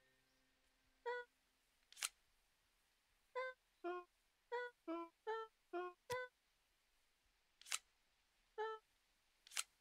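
Short, soft game chimes ring one after another.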